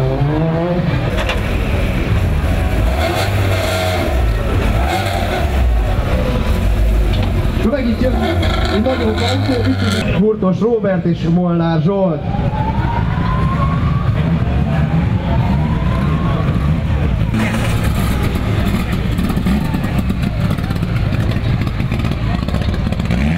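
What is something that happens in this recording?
A rally car engine idles with a low rumble.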